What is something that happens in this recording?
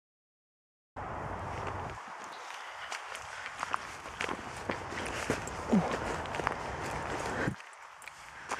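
Footsteps rustle and crunch through dry undergrowth close by.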